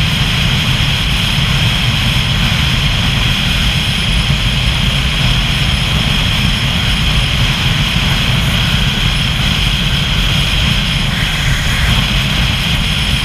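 A motorcycle engine hums steadily.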